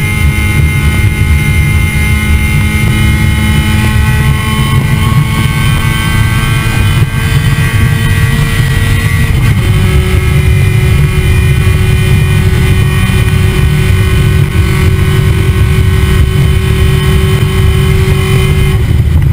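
Wind rushes past the moving car.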